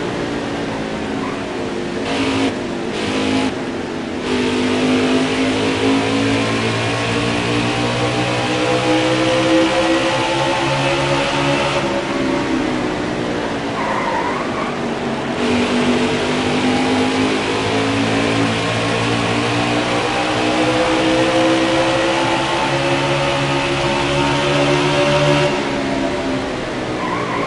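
A racing car engine roars loudly at high revs, its pitch rising and falling.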